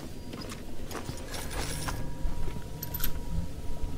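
Coins clink as they are picked up.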